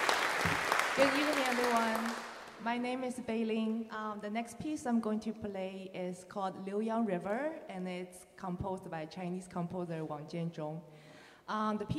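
A young woman sings into a microphone in a large echoing hall.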